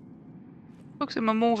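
A young woman speaks with animation into a nearby microphone.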